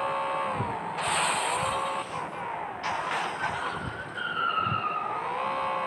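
Tyres skid and squeal on rough ground.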